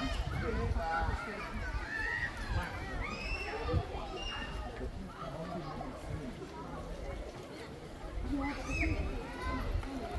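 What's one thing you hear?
A group of people talk and call out nearby, outdoors.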